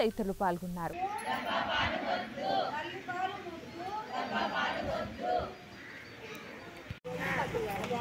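A crowd of women sing together.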